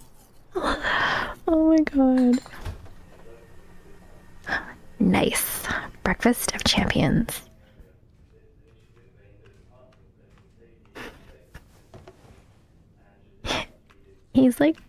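A young woman talks and laughs with animation, close to a microphone.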